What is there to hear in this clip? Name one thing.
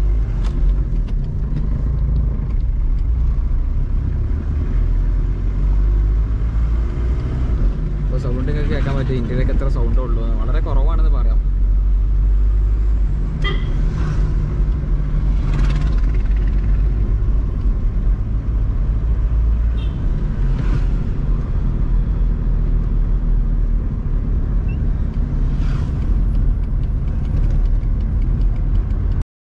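A small car engine hums and rumbles steadily from inside the car.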